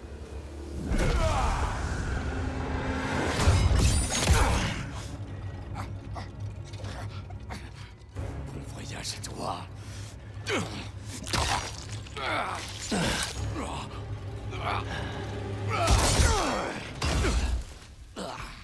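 Heavy blows and crashes land during a fight.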